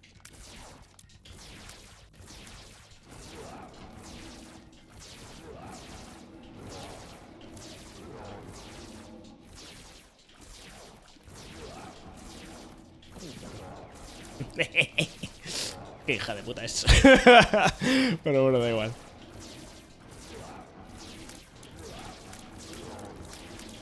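Video game sound effects pop and thud steadily.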